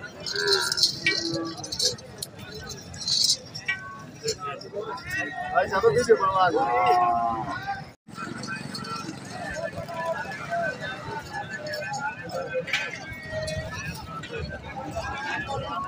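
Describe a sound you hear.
A crowd of men chatters in the background outdoors.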